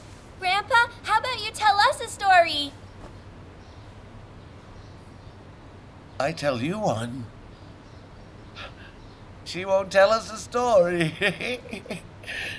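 A young girl asks a question in a bright, clear voice.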